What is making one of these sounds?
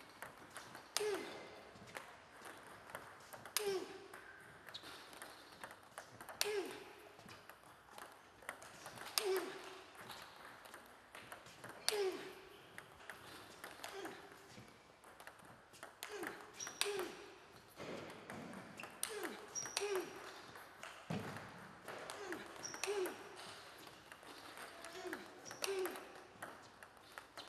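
A ping-pong ball clicks against paddles in a steady rally.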